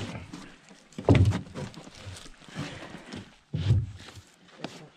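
A heavy log thuds as it is tossed down.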